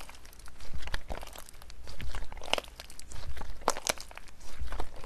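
Sticky slime squelches and crackles as hands squeeze and stretch it.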